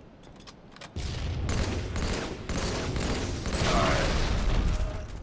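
Gunshots crack in rapid bursts.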